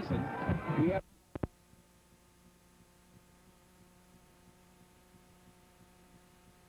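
Faint static hisses with a low electrical hum.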